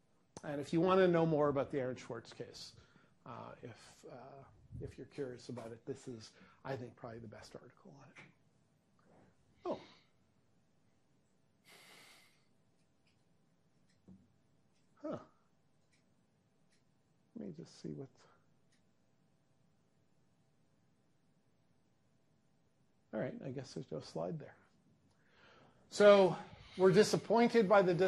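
A middle-aged man lectures calmly, with long pauses.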